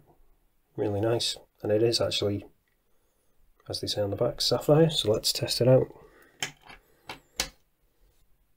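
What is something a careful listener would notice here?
A metal watch bracelet clinks softly as it is handled.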